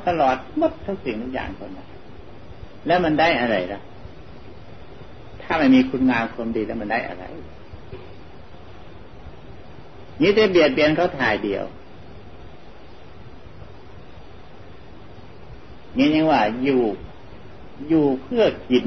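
An elderly man speaks slowly and calmly, in short phrases with long pauses.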